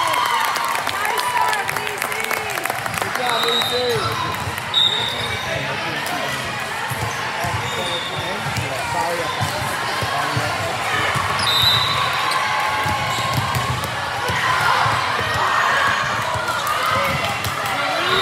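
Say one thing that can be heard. A crowd of young women chatters and calls out in a large echoing gym.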